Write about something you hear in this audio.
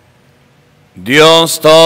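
Another man begins speaking into a microphone, heard through loudspeakers.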